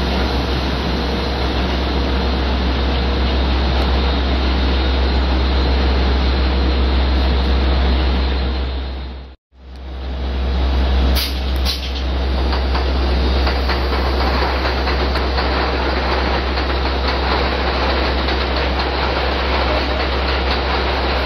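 Wind blows steadily outdoors, buffeting the microphone.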